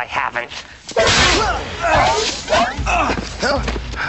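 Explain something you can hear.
A body thuds hard onto stone steps.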